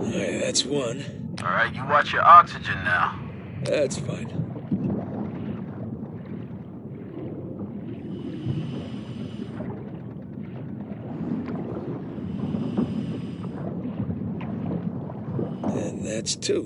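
A scuba diver breathes out, and bubbles gurgle underwater.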